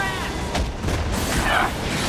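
Electricity crackles and zaps.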